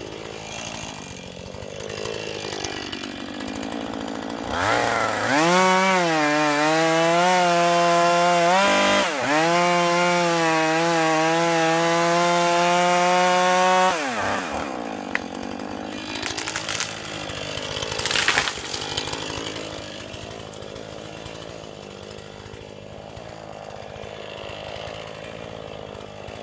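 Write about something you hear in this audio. A chainsaw engine idles with a low putter.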